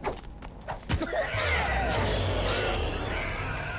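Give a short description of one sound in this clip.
A magical spell shimmers and whooshes.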